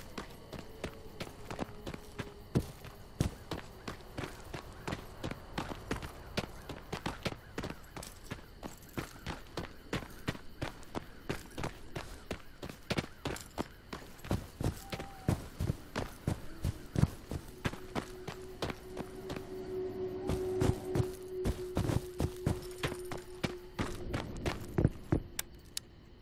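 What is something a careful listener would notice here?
Footsteps crunch steadily over gravel and dry grass.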